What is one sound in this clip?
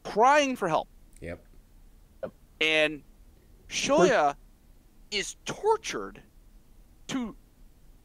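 A middle-aged man talks with animation over an online call, in short bursts.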